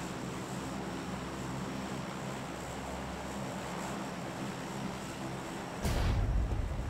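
Propeller aircraft engines drone steadily.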